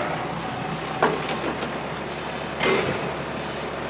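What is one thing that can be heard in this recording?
Heavy logs thud and knock against a truck's load.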